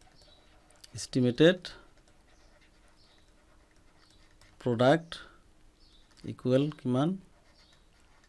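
A man speaks calmly into a close microphone, in short bursts.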